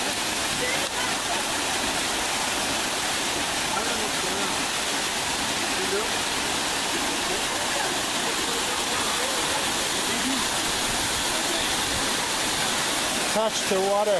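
A waterfall splashes steadily onto rocks.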